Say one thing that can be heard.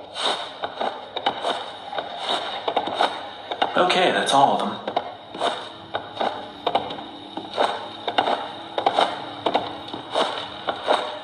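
Footsteps thud steadily on creaky wooden floorboards.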